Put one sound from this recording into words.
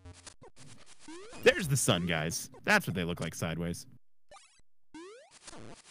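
Chiptune game sound effects beep and chirp.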